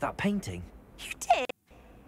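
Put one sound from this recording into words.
A young woman asks a short question with surprise.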